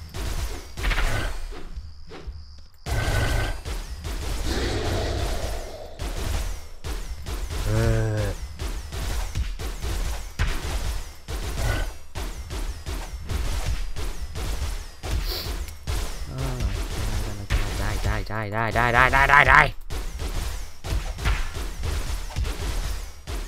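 Rapid blows thud against a large creature again and again.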